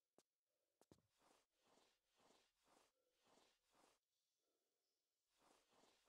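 A man talks quietly into a microphone.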